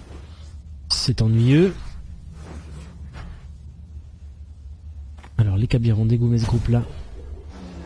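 A magic spell strikes with a loud, bright whoosh.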